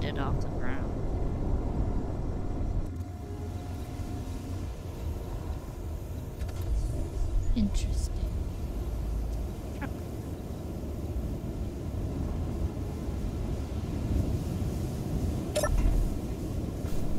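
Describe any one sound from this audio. A vehicle engine rumbles low and steadily.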